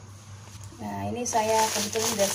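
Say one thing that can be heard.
A plastic bag crinkles under a hand.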